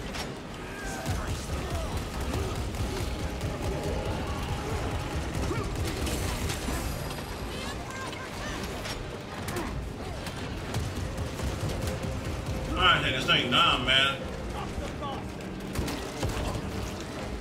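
Gunfire bursts and explosions boom in rapid bursts.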